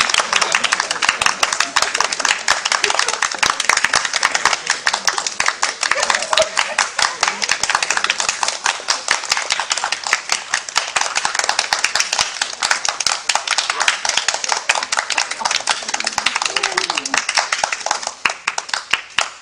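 A large crowd claps and applauds steadily.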